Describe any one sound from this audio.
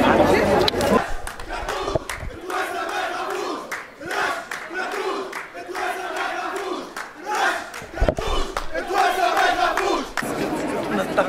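A crowd of young men chants loudly outdoors.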